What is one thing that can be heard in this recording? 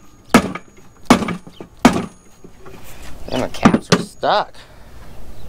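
A rubber mallet knocks against a metal machine.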